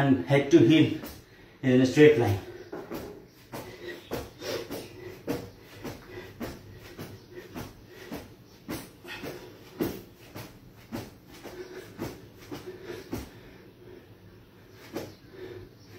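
A man's feet tap lightly on a mat.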